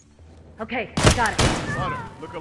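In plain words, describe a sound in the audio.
Gunshots ring out close by, echoing in a hard room.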